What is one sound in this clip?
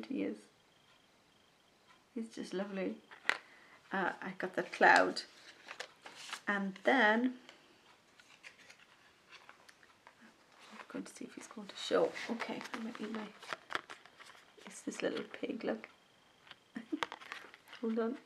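A middle-aged woman talks calmly and close up.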